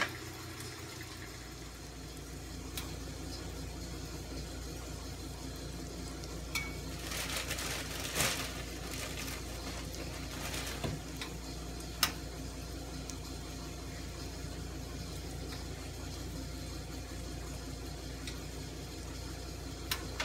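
Bread sizzles softly in a frying pan.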